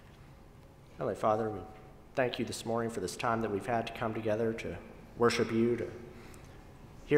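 A man speaks calmly through a microphone in an echoing room.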